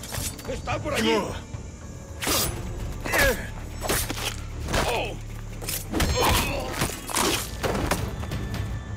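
Men grunt and cry out in pain.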